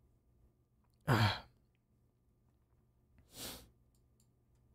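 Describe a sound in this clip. A young man laughs briefly, close to a microphone.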